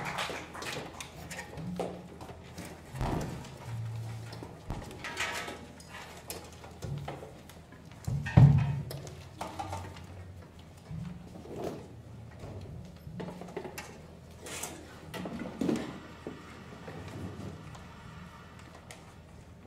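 Musicians shuffle about and knock equipment on a stage in a large hall.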